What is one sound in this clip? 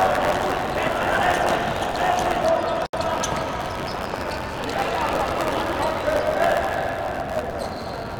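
Sneakers squeak on a hard indoor court in an echoing hall.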